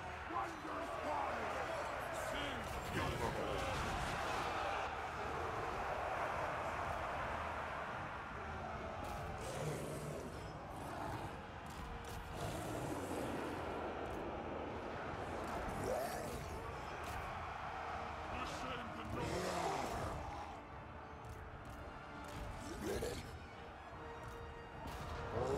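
Swords clash and soldiers yell in a large battle.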